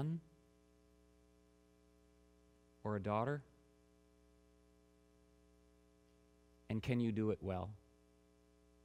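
A man speaks calmly into a microphone in short phrases with long pauses.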